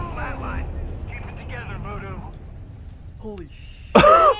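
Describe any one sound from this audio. An explosion booms and rumbles close by.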